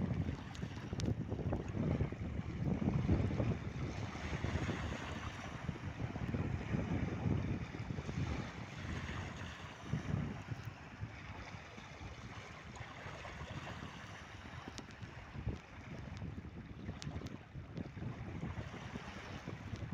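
Wind blows hard into a microphone outdoors, strongest at first and then easing.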